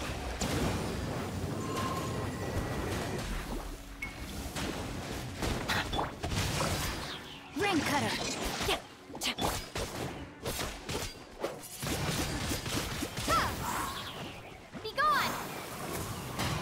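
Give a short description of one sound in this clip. Sword slashes and magic blasts whoosh and crackle in quick bursts.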